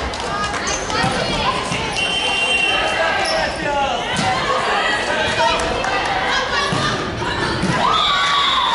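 A volleyball thumps off hands and forearms.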